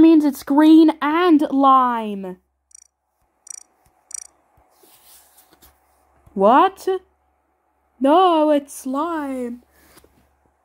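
A child speaks loudly and with animation, close to a microphone.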